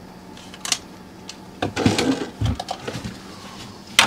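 A cooler lid creaks open.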